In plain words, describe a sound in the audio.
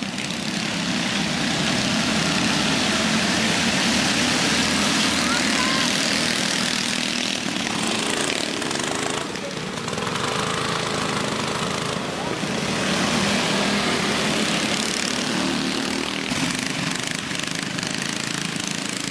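Small engines buzz and whine as go-karts race past outdoors.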